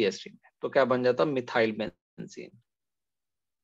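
A young woman speaks calmly through an online call.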